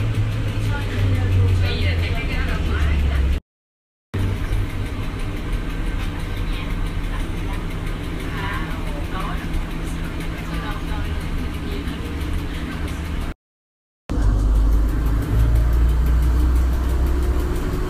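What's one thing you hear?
A bus engine hums low and steady from inside the cab.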